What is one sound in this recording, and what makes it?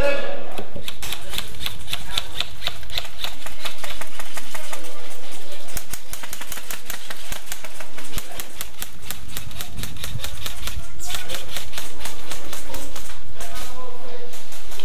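Airsoft guns fire in rapid bursts of sharp clicks.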